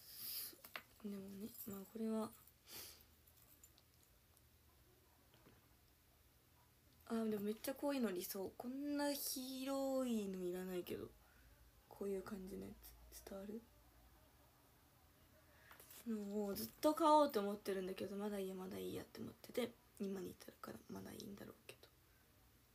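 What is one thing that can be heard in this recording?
A young woman speaks calmly and softly, close by, with pauses.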